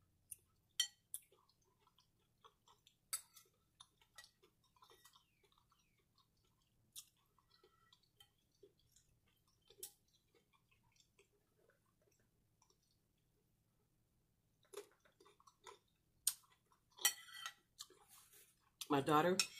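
A fork scrapes and clinks against a plate close by.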